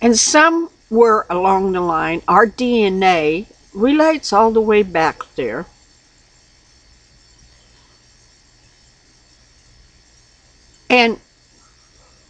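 An elderly woman speaks calmly and expressively, close to a microphone.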